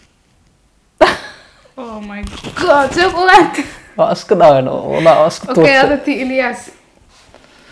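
A young man and a young woman laugh loudly together.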